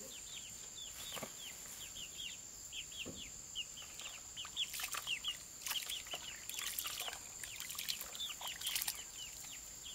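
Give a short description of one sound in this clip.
Hands stir and squelch wet feed in a bucket.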